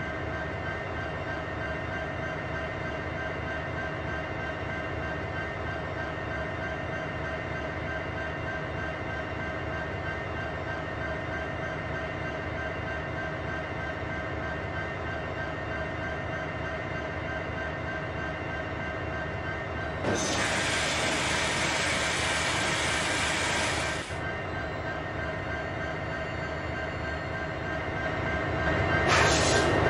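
Freight wagons rumble along rails.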